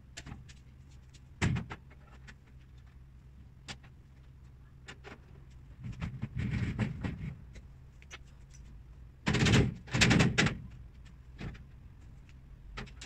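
Cabinet panels knock and clatter as they are fitted together.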